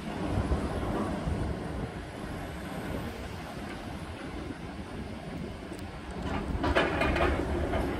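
A demolition excavator's diesel engine rumbles.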